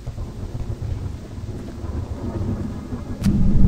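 A locomotive engine rumbles low and steadily.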